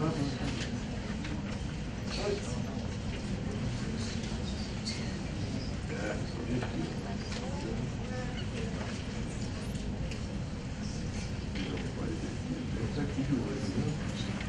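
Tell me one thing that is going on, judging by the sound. A man speaks to the audience through a microphone and loudspeakers.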